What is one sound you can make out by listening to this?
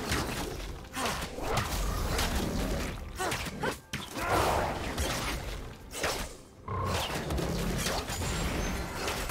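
Spell blasts and hit effects crackle and whoosh in a fast fight.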